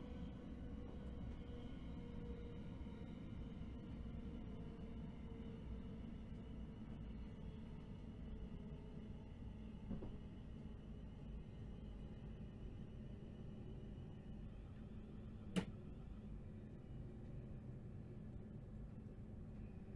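Train wheels rumble and click over the rails.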